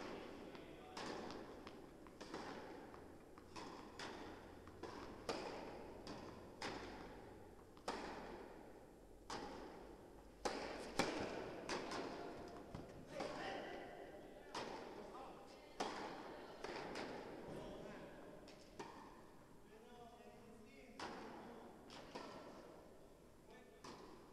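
A tennis ball bounces on a hard court, again and again.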